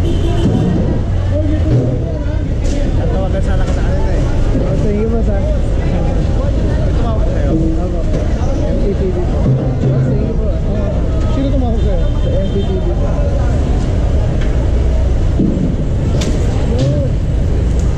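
A crowd of men and women chatters and calls out on a busy street.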